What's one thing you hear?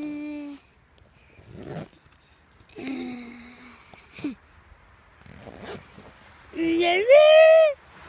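A zipper rasps open and shut on a bag.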